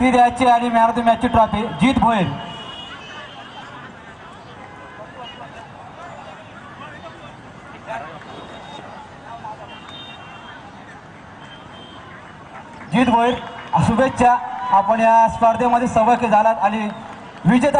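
A man announces loudly over a loudspeaker outdoors.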